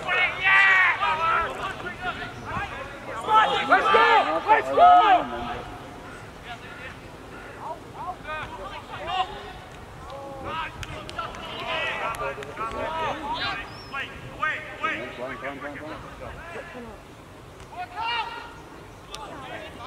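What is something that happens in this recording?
Young men shout to each other outdoors.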